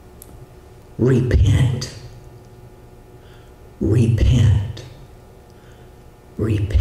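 A middle-aged man preaches into a microphone in short, emphatic bursts.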